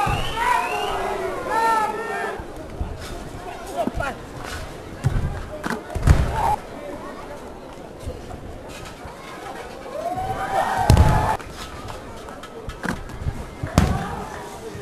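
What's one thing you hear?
A crowd in a large hall cheers and shouts.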